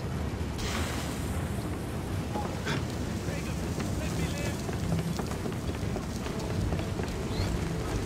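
A low wind rumbles outdoors.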